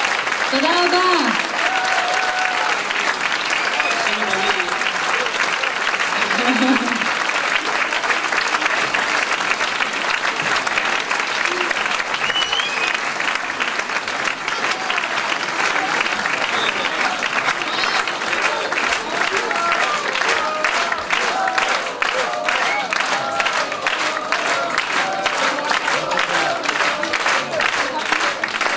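A large audience claps and cheers.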